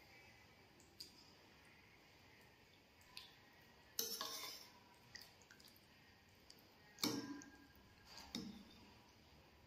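A metal fork clinks and scrapes against a bowl.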